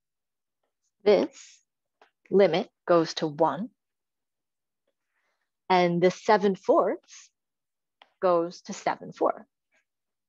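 A woman explains calmly through an online call, in short phrases with pauses.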